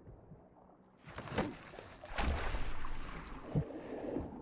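Water splashes and churns loudly.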